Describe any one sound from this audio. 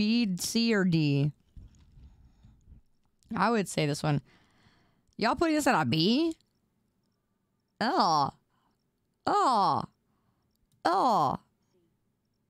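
A young woman speaks with animation into a microphone, in short bursts with pauses.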